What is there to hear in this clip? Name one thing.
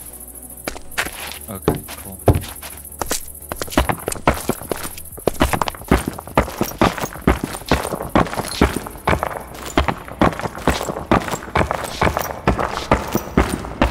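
Stone blocks crunch and break in quick succession.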